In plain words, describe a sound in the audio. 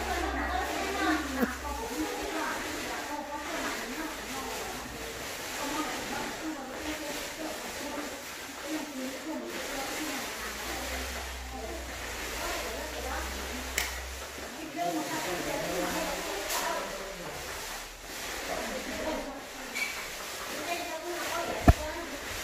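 Paint rollers roll softly over a wall.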